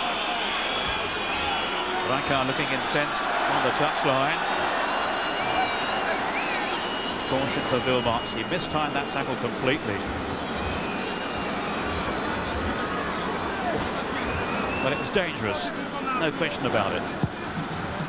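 A large stadium crowd roars and whistles throughout.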